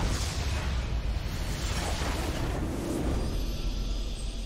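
A game structure explodes with a deep boom.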